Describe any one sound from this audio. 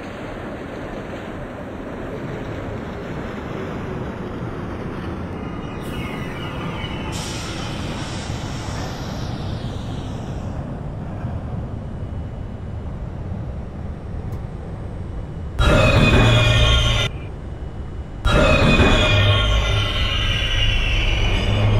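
A train rumbles along the tracks as it approaches.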